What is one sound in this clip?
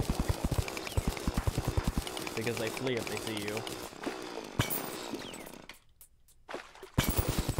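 A mining drill chips rapidly through rock with quick repeated thuds.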